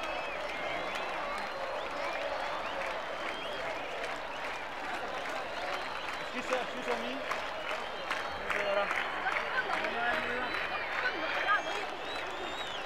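A large crowd cheers and whistles in a vast open venue.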